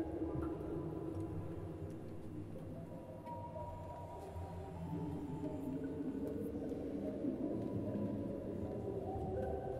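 A small orchestra plays low, sustained notes that swell slowly.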